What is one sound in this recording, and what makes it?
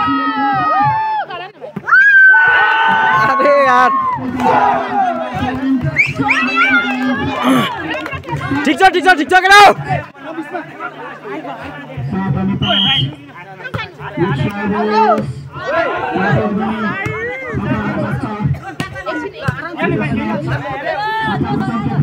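Spectators shout and cheer loudly outdoors.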